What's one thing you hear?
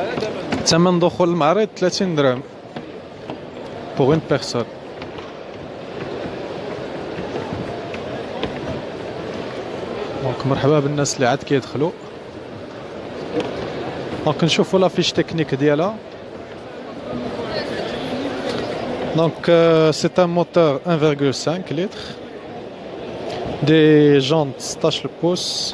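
A crowd murmurs and chatters in a large, echoing hall.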